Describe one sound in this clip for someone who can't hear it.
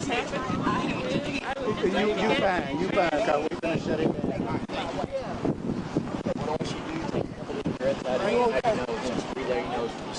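Several men and women talk and call out excitedly outdoors, heard from a little way off.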